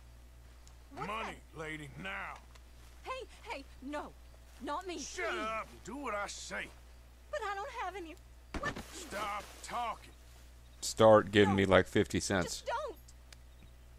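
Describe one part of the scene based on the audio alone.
A young woman pleads in a frightened voice, close by.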